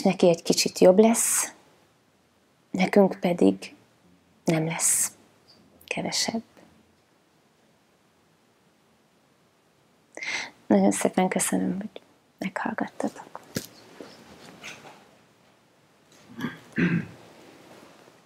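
A woman speaks calmly into a clip-on microphone, close by, with pauses.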